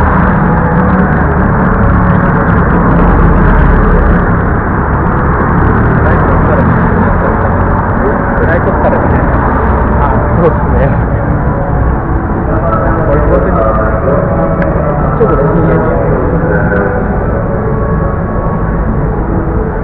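A crowd murmurs and chatters in a large, echoing hall.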